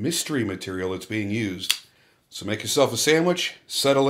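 A folding knife blade snaps open with a click.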